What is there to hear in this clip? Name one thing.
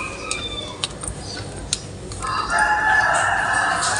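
A keyring jingles.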